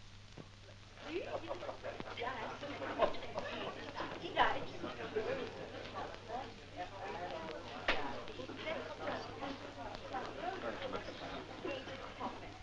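Several men chatter quietly in a room.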